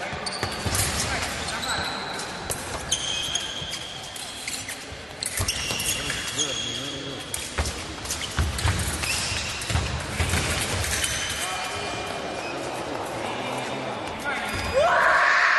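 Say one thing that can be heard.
Fencing blades clash and click.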